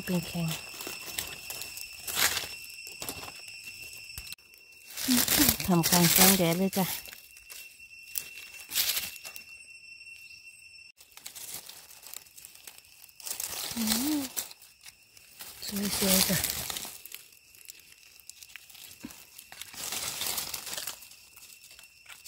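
A knife scrapes and trims a mushroom stem close by.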